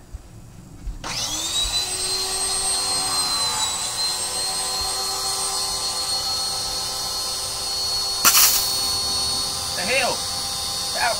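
A pressure washer motor starts up and runs with a steady high whine.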